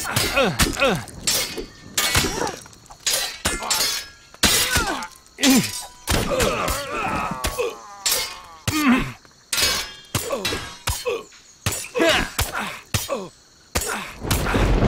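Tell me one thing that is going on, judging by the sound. Men grunt and cry out as they are hit.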